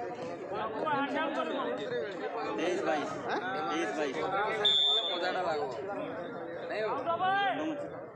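Men on a court call out to each other loudly.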